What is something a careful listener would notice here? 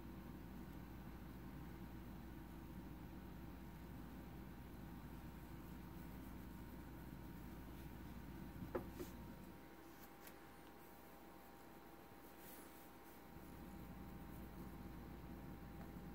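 A cat purrs close by with a low steady rumble.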